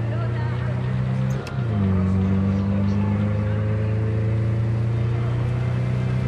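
A car engine hums steadily, dropping briefly and then rising again as the car drives on.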